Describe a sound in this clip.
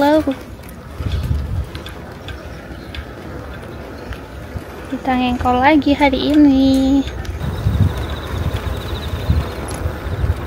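Wind gusts against the microphone outdoors.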